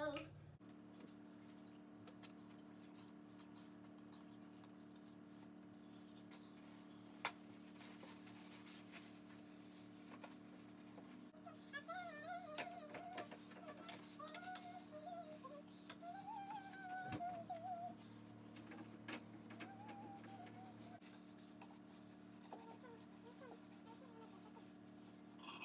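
Objects knock and rustle as a woman rummages through things.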